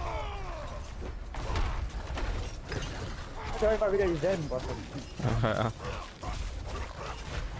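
Magic blasts and weapon hits crackle and thud in a fast fight.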